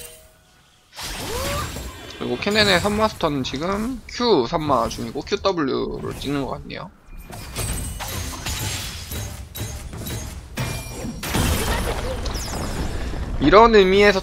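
Magic blasts and weapon clashes crackle in a fast video game battle.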